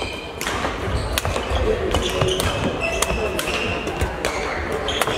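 Shuttlecocks are struck with rackets, with sharp pops echoing through a large hall.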